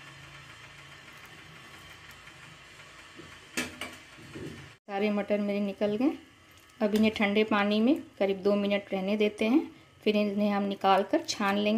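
A metal strainer scoops peas out of water with soft splashes.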